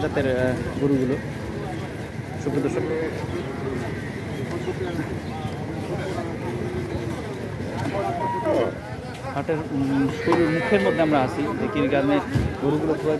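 Several men talk loudly nearby.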